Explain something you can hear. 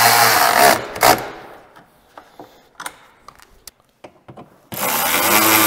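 A hand tool clicks and clanks against metal.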